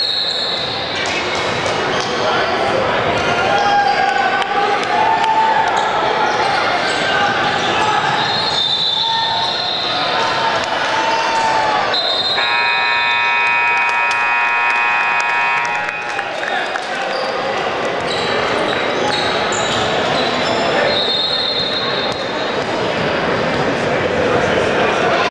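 A crowd of spectators chatters and cheers.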